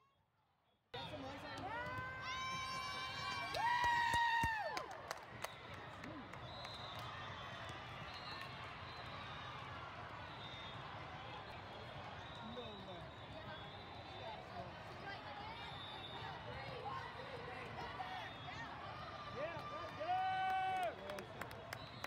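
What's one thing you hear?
Teenage girls cheer and shout loudly.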